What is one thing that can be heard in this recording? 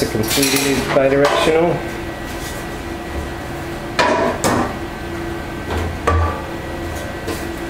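A heavy frame clunks and knocks as a man handles it.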